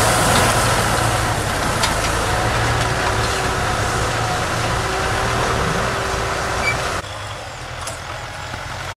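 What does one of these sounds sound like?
A diesel farm tractor engine runs under load, pulling a disc plough.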